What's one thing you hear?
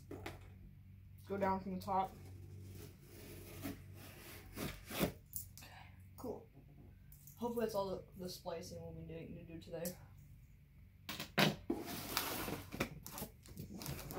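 A cardboard box scrapes and thuds on a wooden tabletop.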